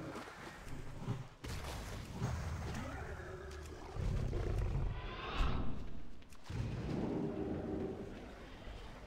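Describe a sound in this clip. Water splashes as feet wade through a stream.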